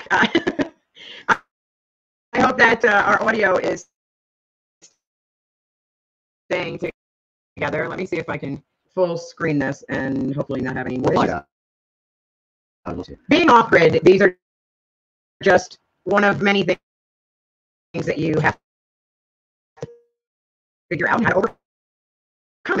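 A woman talks with animation, heard through an online call.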